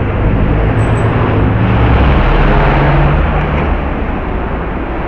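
Street noise rumbles outdoors.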